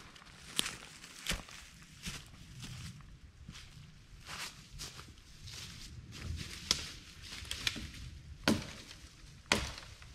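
Footsteps crunch through leaves and twigs on the forest floor.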